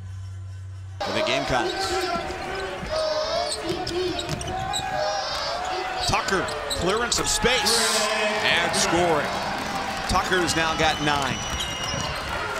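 A large crowd cheers in an echoing arena.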